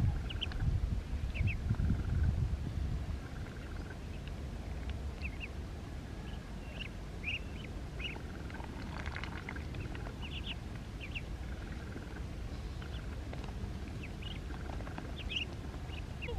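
Ducklings peep in high, short chirps.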